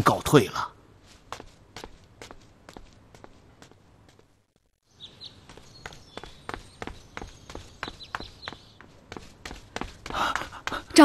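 Quick footsteps patter across the ground.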